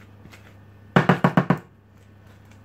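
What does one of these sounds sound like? A spoon taps sharply against a bowl several times.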